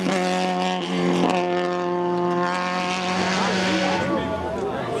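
A rally car engine revs hard and roars away into the distance.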